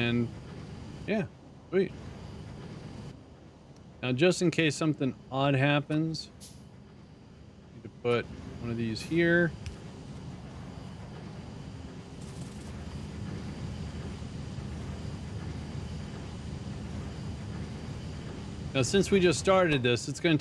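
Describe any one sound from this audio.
A middle-aged man talks casually into a microphone, in short bursts.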